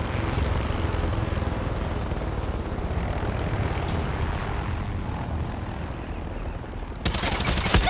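A helicopter drones in the distance.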